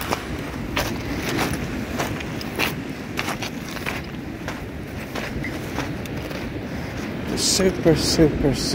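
Footsteps crunch on pebbles and sand.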